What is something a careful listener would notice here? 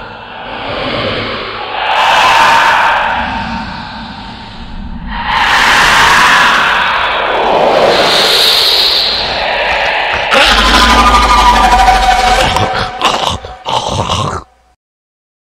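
A young man speaks in a loud, menacing voice.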